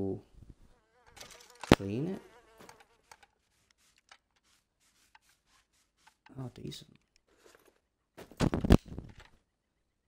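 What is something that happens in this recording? A cloth rubs and squeaks along a metal gun barrel.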